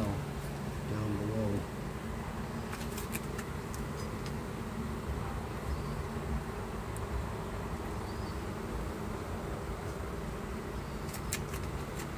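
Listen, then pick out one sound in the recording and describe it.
A metal tool scrapes and clicks against wooden frames.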